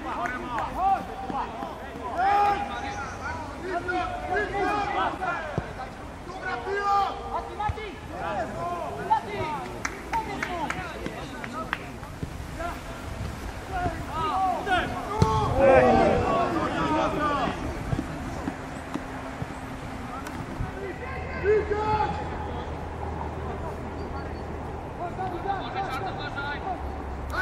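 Football players shout to one another across an open field.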